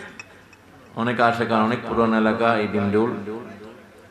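A middle-aged man speaks with animation into a microphone over loudspeakers, in a reverberant space.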